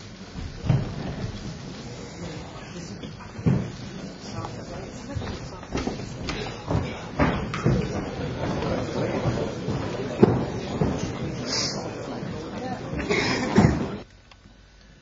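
An audience applauds in a large hall, then falls quiet.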